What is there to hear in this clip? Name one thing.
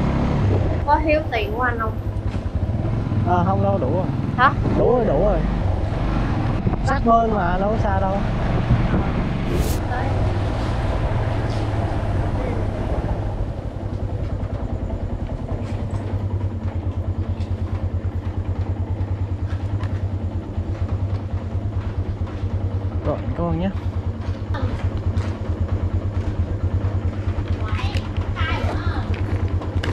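A young man talks close by in an animated way.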